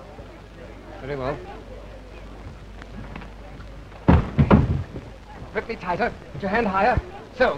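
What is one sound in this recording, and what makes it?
A man shouts angrily, close by.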